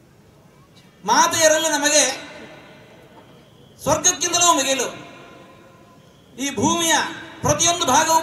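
An elderly man speaks forcefully into a microphone in bursts, with pauses between phrases.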